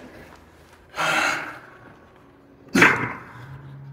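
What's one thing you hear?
Heavy dumbbells thud down onto the floor.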